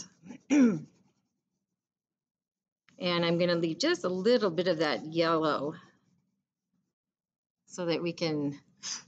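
A woman speaks warmly and clearly over an online call.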